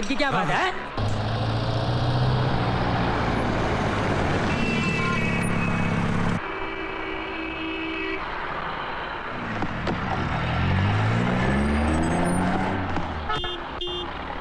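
A car engine hums as a car drives along.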